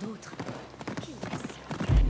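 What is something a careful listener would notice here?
Dry wooden planks clatter under horse hooves.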